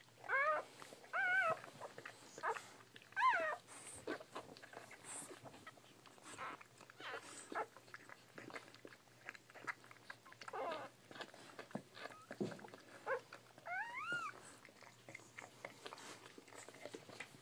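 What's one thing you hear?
Puppies shuffle and rustle against a soft blanket.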